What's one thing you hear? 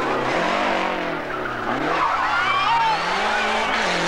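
Tyres squeal as a rally car slides around a bend.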